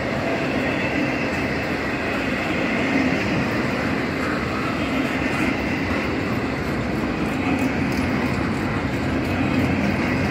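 Steel wheels clatter and squeal over the rail joints.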